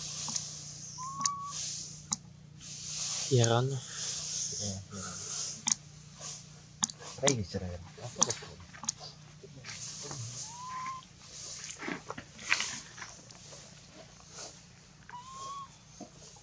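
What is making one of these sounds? A baby monkey gives short high squeaks nearby.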